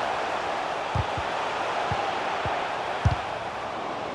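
A ball is kicked with a dull thump.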